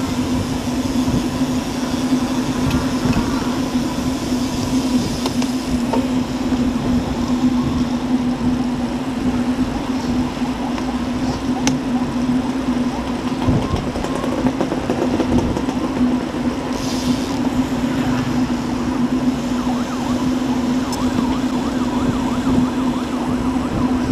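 Wind rushes loudly past, as when riding outdoors.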